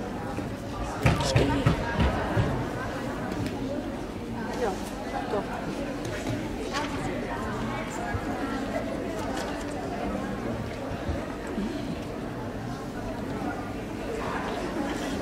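Feet thud and land on a wooden beam.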